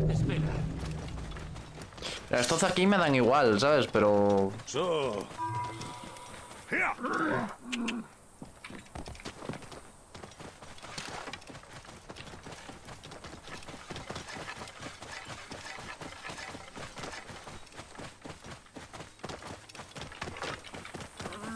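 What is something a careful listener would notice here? Horse hooves clop steadily on dry ground.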